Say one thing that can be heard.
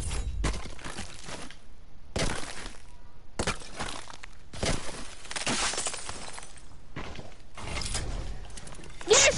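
Game building pieces snap into place in quick clattering bursts.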